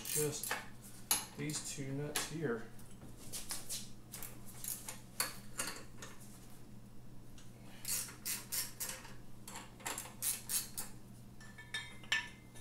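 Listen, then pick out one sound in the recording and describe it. Metal tools click and clink against a motorcycle engine.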